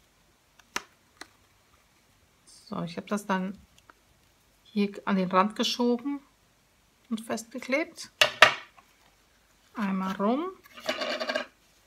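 Paper rustles and taps softly as it is folded and handled.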